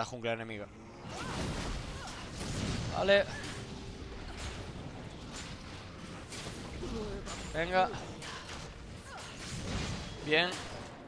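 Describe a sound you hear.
Magic attacks crackle and thud repeatedly in a game fight.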